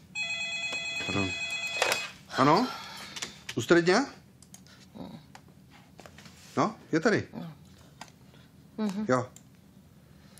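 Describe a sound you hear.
A man speaks curtly into a phone, close by, in short bursts.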